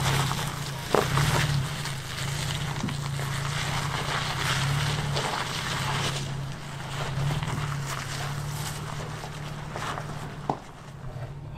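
Rocks knock sharply under the truck.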